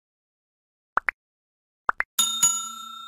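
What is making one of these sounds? A button clicks twice.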